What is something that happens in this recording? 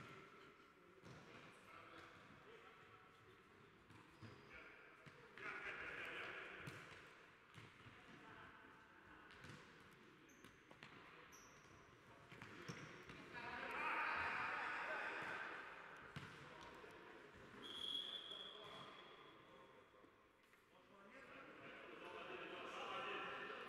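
A ball is kicked with sharp thuds in a large echoing hall.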